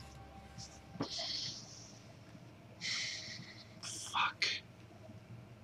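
A young man sighs and breathes heavily near a microphone.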